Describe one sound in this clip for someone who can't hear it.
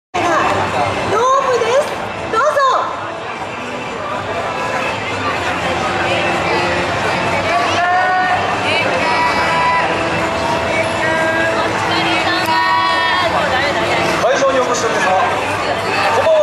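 A crowd chatters and cheers outdoors.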